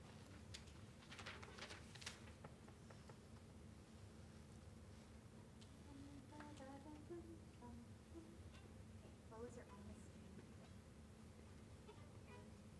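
A small string orchestra plays softly in a large hall.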